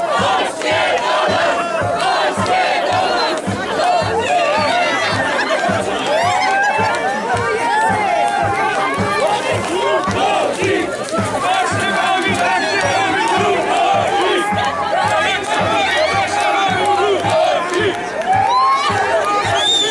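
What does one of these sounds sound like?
A crowd of men and women cheers and sings along outdoors.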